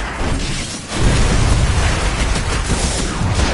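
A large explosion booms and roars.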